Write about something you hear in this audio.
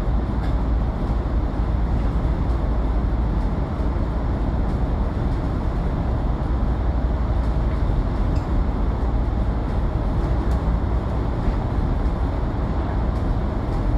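A vehicle engine rumbles steadily while driving through an echoing tunnel.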